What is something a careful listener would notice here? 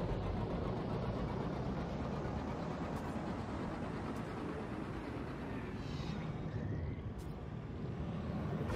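A spacecraft engine roars steadily as it rushes through space.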